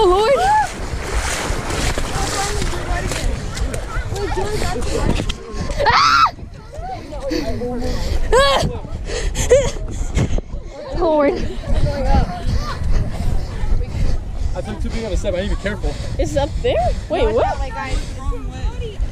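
Several young people talk and shout with excitement outdoors.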